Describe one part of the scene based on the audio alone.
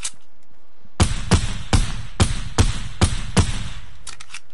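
Rapid gunshots ring out loud and sharp.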